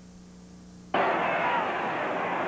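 A stadium crowd roars.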